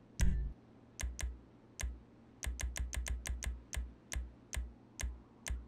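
Short electronic menu clicks tick one after another, often in quick succession.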